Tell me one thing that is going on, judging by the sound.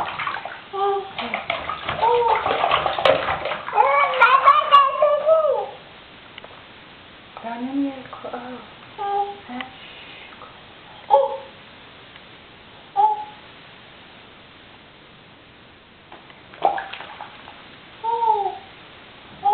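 A toddler babbles and coos up close, in a small echoing room.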